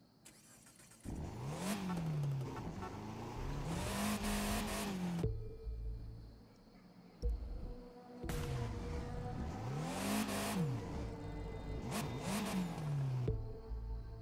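A small car engine revs up and down repeatedly.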